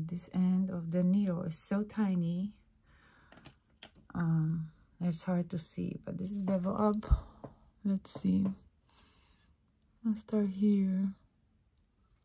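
A middle-aged woman speaks softly and closely into a microphone.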